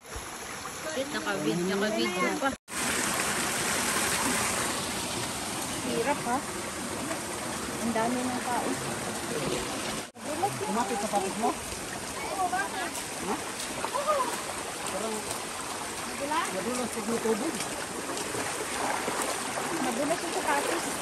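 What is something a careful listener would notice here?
A stream of water rushes and splashes over rocks nearby.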